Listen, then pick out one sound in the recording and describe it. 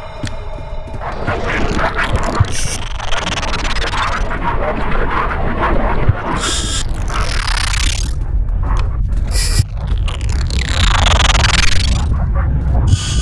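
A monster rushes past with a loud, roaring whoosh.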